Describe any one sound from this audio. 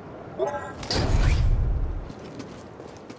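A heavy metal door slides open with a deep rumble.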